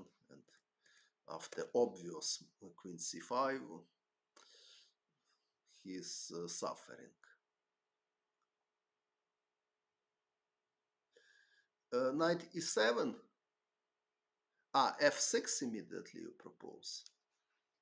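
A man speaks calmly into a close microphone, with pauses.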